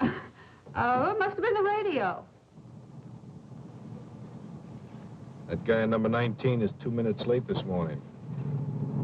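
A man speaks calmly at close range.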